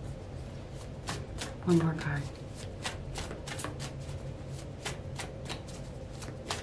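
Playing cards shuffle and snap together close by.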